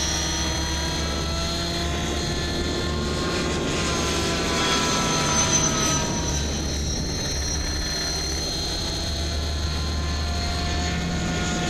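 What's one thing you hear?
A small aircraft engine drones steadily overhead.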